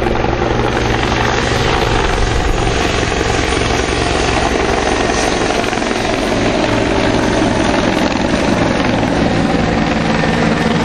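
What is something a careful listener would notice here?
A helicopter's rotor thumps loudly overhead as it flies past.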